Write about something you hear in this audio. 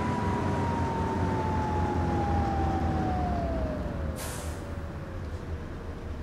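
A bus engine hums and slows, its pitch falling.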